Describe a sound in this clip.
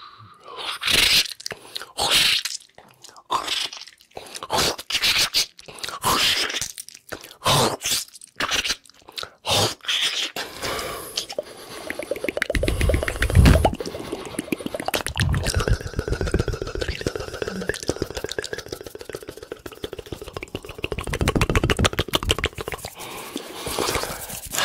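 A man whispers and breathes out sharply, very close to a microphone.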